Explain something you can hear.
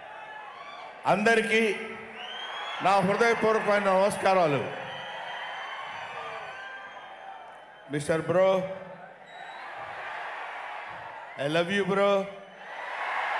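A middle-aged man speaks with animation through a microphone on a loudspeaker, in short bursts.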